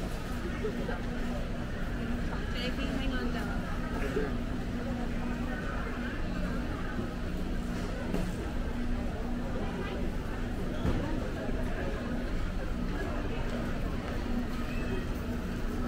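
A crowd of shoppers murmurs and chatters in a large echoing hall.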